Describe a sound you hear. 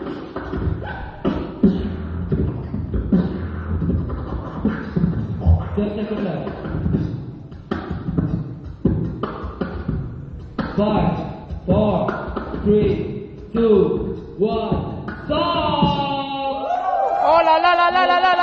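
A young man raps fast and rhythmically into a microphone, heard through loudspeakers in a large echoing hall.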